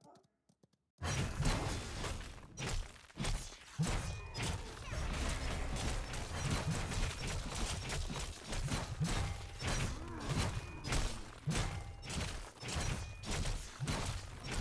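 Video game combat sounds of spell blasts and hits clash rapidly.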